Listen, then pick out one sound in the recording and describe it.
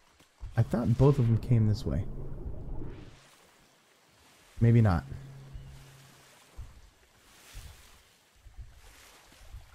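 Water splashes softly as someone swims.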